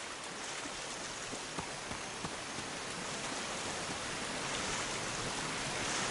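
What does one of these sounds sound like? Water splashes around wading legs.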